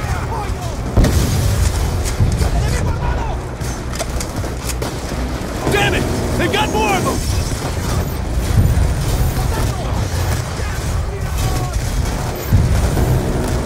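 A rifle fires loud, booming single shots.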